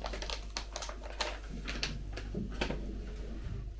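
A plastic packet crinkles and rustles close by.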